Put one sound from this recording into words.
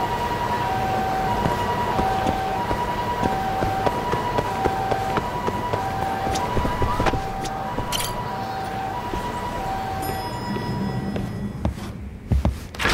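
A busy city street hums with traffic noise.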